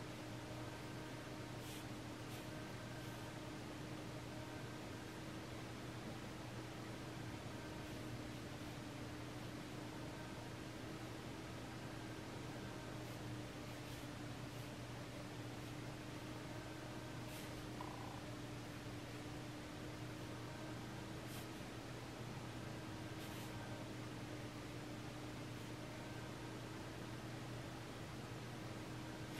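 A fine brush strokes softly across paper.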